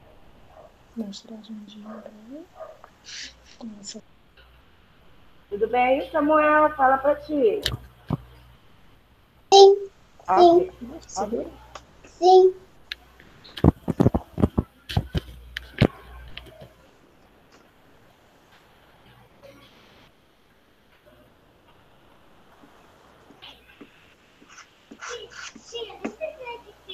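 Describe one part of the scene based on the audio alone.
A woman speaks through an online call.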